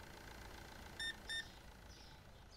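A checkout scanner beeps twice.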